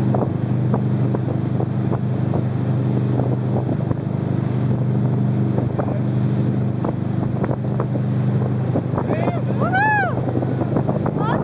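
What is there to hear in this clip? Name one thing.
Water splashes and hisses as a wakeboard cuts across the waves.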